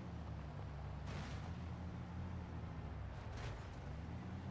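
A truck's tyres bump and thud over rough ground.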